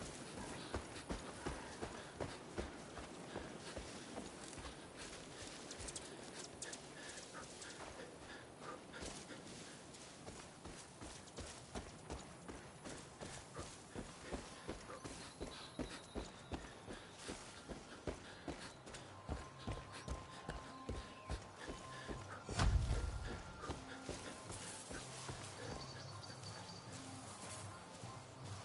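Footsteps tread steadily through grass and dirt.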